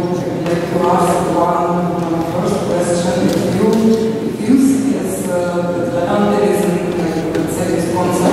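A woman speaks calmly into a microphone, heard through loudspeakers in a large echoing hall.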